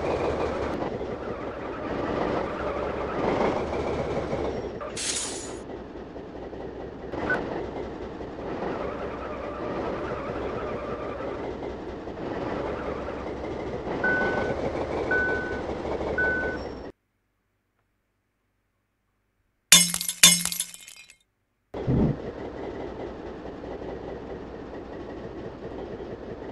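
A van engine hums steadily.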